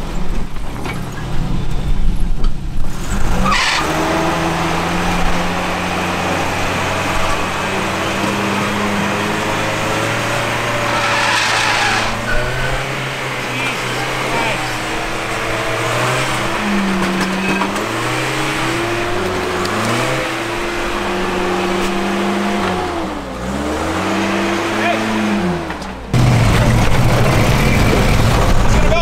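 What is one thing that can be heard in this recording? Large tyres grind and crunch over rock.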